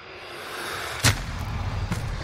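A single loud gunshot cracks.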